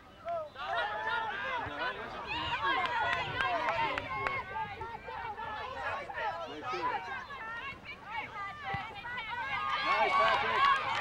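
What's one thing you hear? A crowd of adults and children shouts and cheers outdoors.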